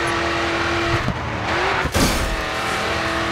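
Car tyres skid onto gravel at the roadside.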